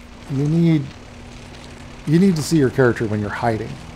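Fire crackles on a burning car.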